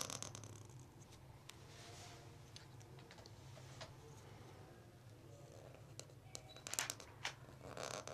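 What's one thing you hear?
A pen nib scratches softly across paper.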